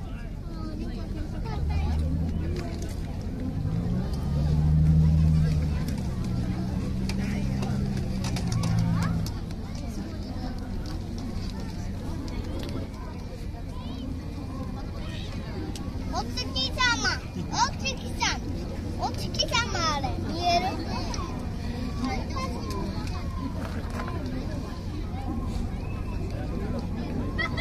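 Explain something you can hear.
A group of people talk and call out nearby, outdoors.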